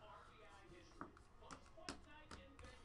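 A plastic card case clicks softly against a table.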